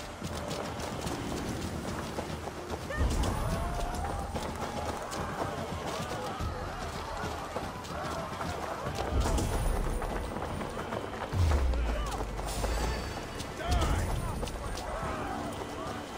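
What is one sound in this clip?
Coins tinkle and jingle in a pouch.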